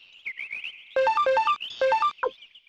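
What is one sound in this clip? Short electronic beeps tick quickly.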